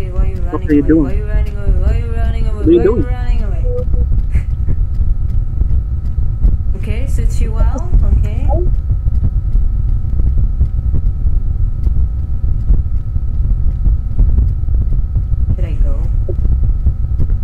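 A young woman talks animatedly into a microphone, close up.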